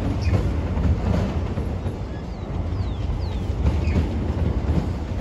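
A long freight train rumbles past, its wheels clattering rhythmically over the rail joints.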